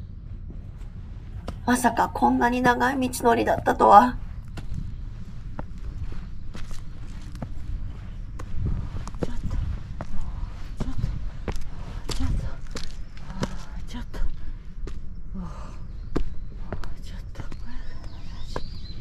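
Footsteps climb stone steps, crunching dry leaves.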